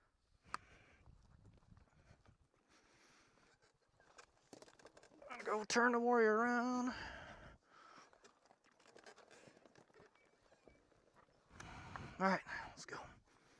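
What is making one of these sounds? Boots scuff and crunch on dry dirt and twigs.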